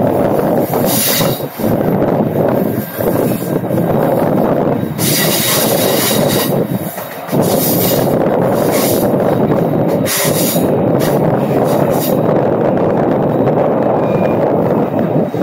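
A train rumbles and clatters steadily along the tracks.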